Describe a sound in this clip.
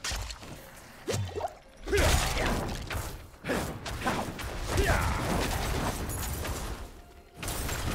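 Fighting sounds from a video game clash and thud.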